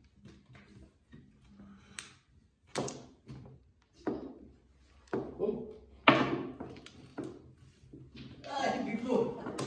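Mahjong tiles clack against each other and the table.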